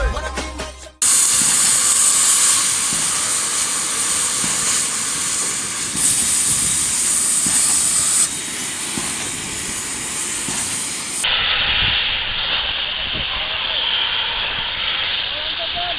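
A cutting torch hisses and roars steadily.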